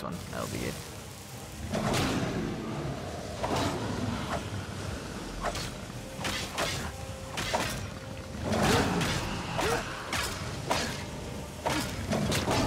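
Axes strike a dragon's scaly hide with sharp, heavy thuds.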